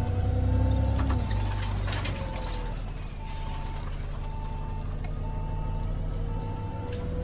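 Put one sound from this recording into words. A bus engine hums steadily.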